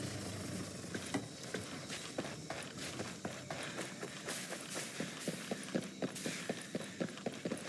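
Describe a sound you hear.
Footsteps tread steadily over rough ground.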